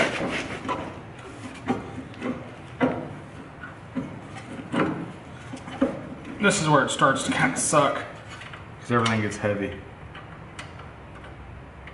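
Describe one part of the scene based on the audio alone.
Metal parts clank and knock as a man works on a car's suspension.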